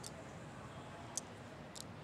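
Glass marbles click together in a hand.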